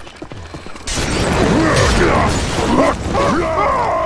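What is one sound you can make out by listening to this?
A flamethrower roars in a burst of fire.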